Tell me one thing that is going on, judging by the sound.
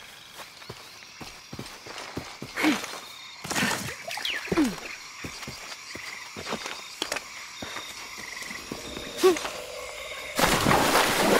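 Footsteps patter quickly over leaves and earth.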